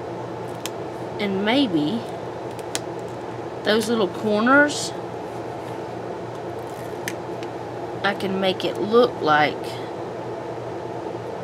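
Fingers rub and press on paper, with soft rustling.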